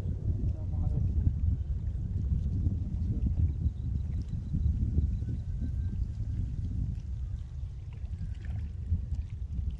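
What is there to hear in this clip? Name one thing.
Wind blows hard into the microphone outdoors.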